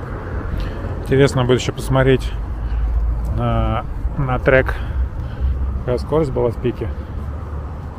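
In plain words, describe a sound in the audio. A young man calls out nearby outdoors.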